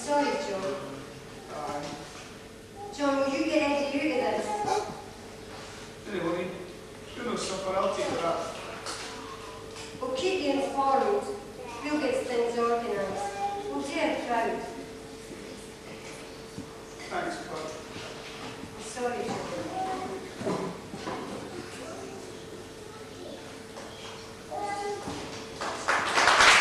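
A man speaks slowly on a stage, heard from across a room.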